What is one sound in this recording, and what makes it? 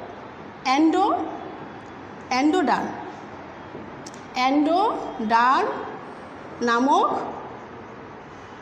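A woman speaks slowly and clearly, as if teaching, in short phrases.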